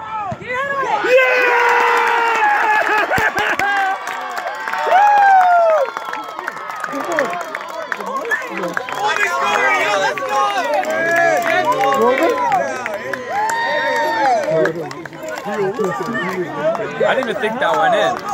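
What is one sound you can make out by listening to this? A crowd of young people cheers and shouts loudly.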